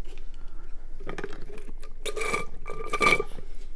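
A man gulps a drink close to a microphone.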